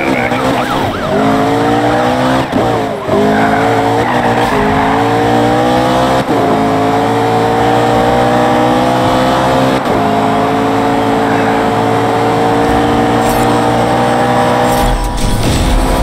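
A car engine revs hard and rises in pitch as it speeds up through the gears.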